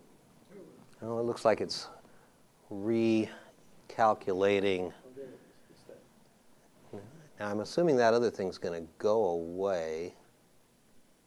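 A man speaks calmly through a lapel microphone.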